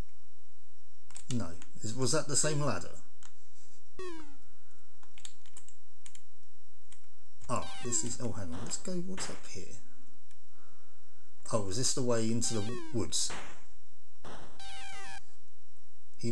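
Bleeping 8-bit home computer game sound effects play as shots are fired.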